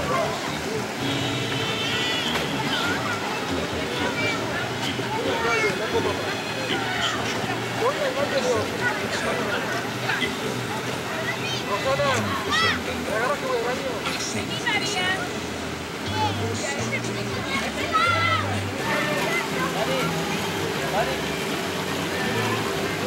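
Children and adults chatter and call out at a distance outdoors.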